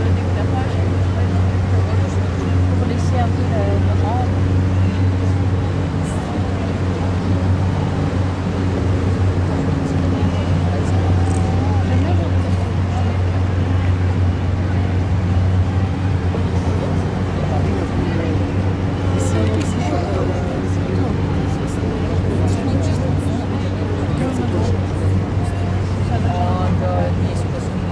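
Boat engines rumble steadily on the water.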